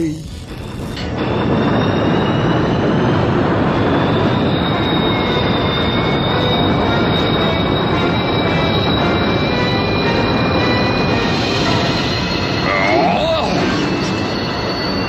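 A large machine rumbles steadily.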